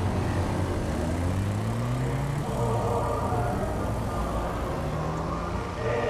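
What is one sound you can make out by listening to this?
A motorcycle engine revs and roars as the motorcycle speeds past.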